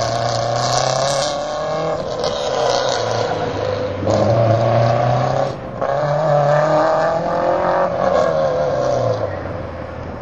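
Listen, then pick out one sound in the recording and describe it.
Tyres squeal on pavement.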